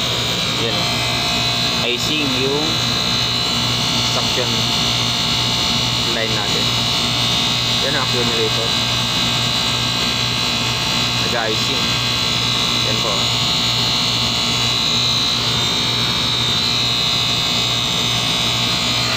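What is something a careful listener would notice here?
A compressor hums steadily with a loud, even drone.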